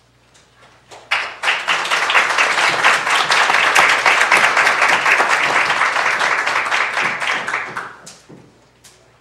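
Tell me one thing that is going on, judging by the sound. A crowd applauds in a large echoing room.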